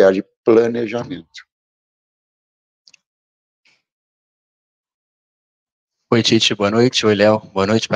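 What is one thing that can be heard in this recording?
An older man speaks calmly into a microphone, pausing between phrases.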